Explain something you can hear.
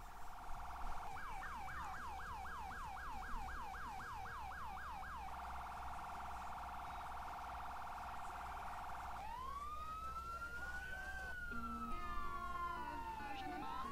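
A police siren wails and yelps rapidly.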